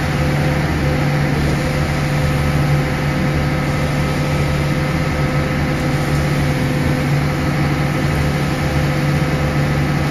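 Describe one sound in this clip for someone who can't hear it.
A mixer drum turns with a steady churning whir.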